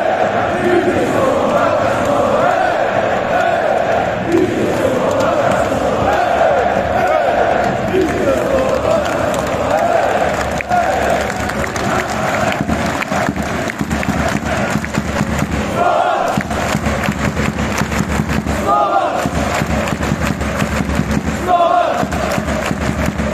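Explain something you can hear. A large crowd of men chants and sings loudly in an echoing stadium.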